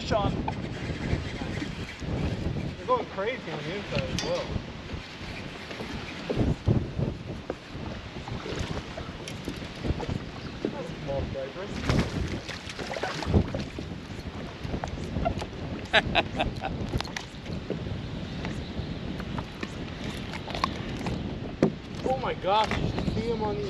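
Wind blows outdoors across open water.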